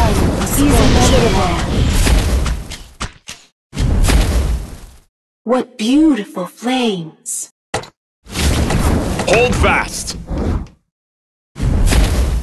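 Swords clash in a battle.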